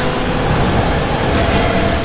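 Large wings beat with a whooshing sound.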